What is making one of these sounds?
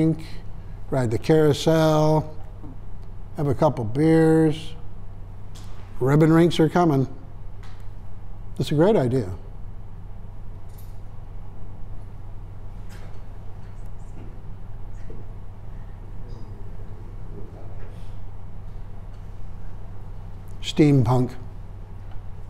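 An elderly man speaks calmly in short phrases with long pauses.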